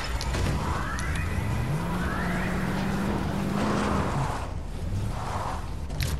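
A car engine revs up and hums steadily.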